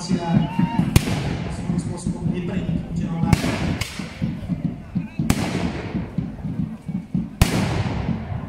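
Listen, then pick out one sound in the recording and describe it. Muskets fire loud sharp shots outdoors, echoing briefly.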